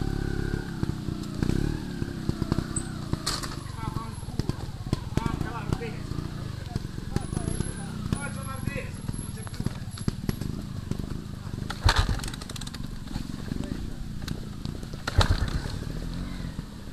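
A dirt bike engine rumbles and sputters close by.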